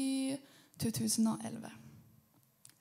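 A young woman sings into a microphone, amplified through loudspeakers.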